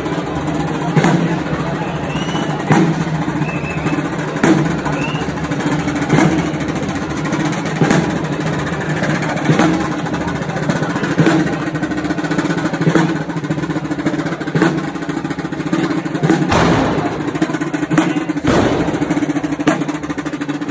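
Wooden pipes play a lively folk tune outdoors.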